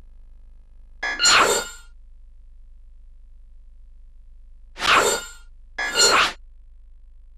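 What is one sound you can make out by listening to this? A game menu plays short bright chimes as options are selected.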